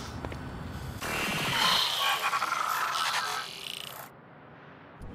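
A harsh electronic static crackles and buzzes, then cuts off.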